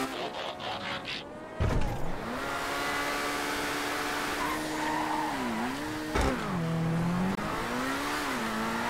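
A sports car engine roars loudly, its pitch rising and falling as it shifts gears.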